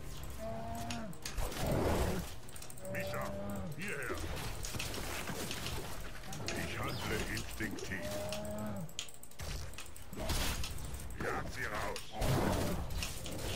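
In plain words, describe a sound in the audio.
Weapons clash and magic blasts burst in a battle.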